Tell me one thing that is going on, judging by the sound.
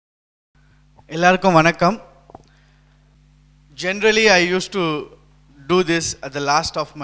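A man speaks with animation into a microphone through a loudspeaker.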